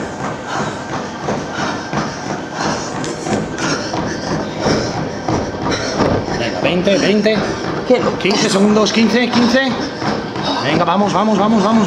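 Footsteps thud rhythmically on a running treadmill.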